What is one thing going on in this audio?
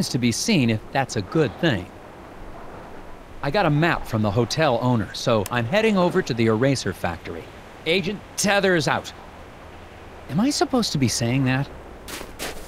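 A man speaks calmly into a phone.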